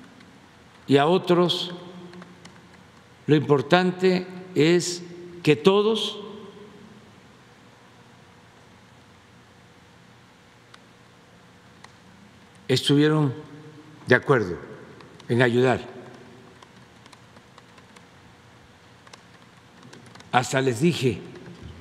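An elderly man speaks slowly and deliberately into a microphone, with long pauses, in an echoing room.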